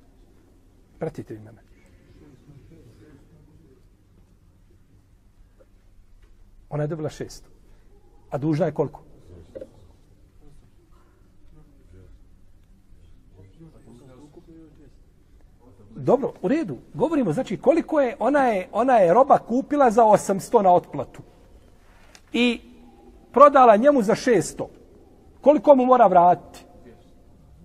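A middle-aged man speaks calmly and with animation, close to a microphone, with pauses.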